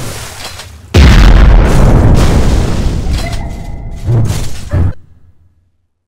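A loud blast booms and rumbles, then slowly dies away.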